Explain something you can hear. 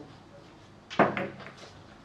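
A cue sharply strikes a billiard ball.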